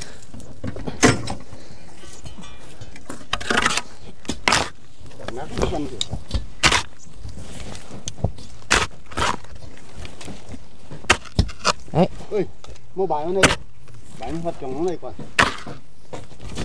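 A hoe scrapes and thuds into dry earth.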